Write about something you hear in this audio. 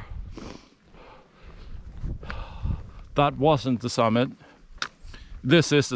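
A middle-aged man talks close by.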